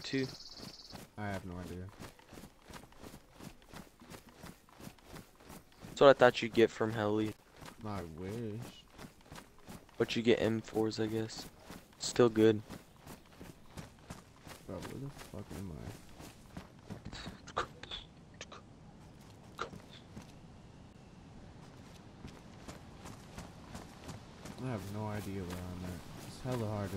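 Quick footsteps run over grass and concrete.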